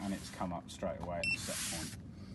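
A finger taps a button on an electronic control panel.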